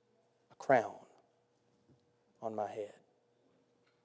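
A man speaks into a microphone in short phrases.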